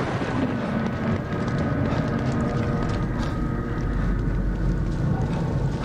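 Footsteps splash quickly on a wet street.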